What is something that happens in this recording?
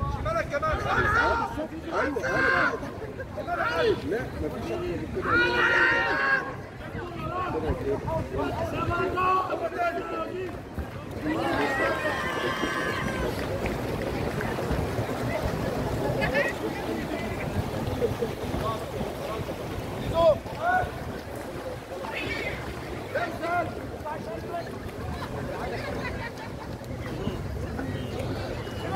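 Swimmers splash and churn water in an outdoor pool.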